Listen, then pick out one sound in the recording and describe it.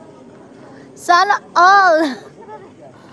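A young woman squeals loudly with laughter.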